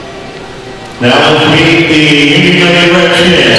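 A group of young women chant loudly together in a huddle, echoing in a large hall.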